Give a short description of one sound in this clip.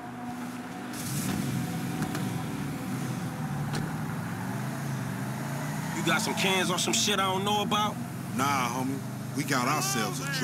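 A car engine starts and revs as the car pulls away.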